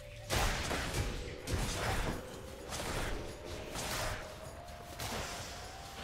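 Fiery blasts and hits burst in quick succession.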